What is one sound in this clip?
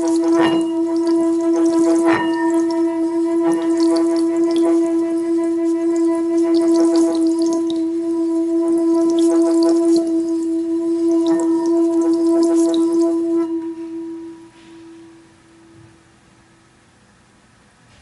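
A metal singing bowl rings with a steady, humming tone as a mallet rubs around its rim, then slowly fades away.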